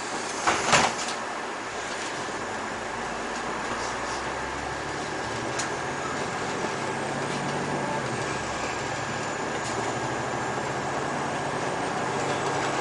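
A diesel city bus drives along a road, heard from inside.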